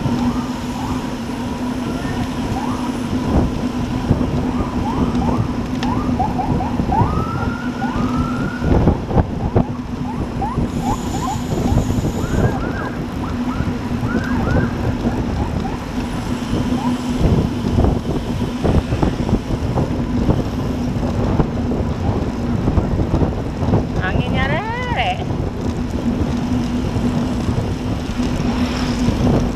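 Wind buffets the microphone steadily.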